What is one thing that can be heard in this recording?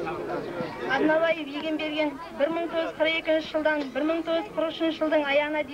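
Young women sing together through a loudspeaker.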